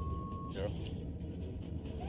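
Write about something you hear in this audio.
A man speaks into a radio handset.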